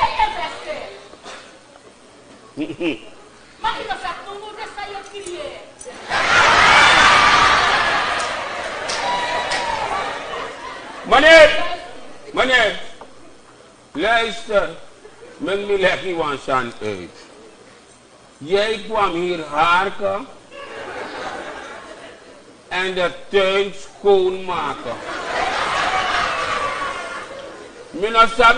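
A woman speaks loudly and with animation in a large echoing hall.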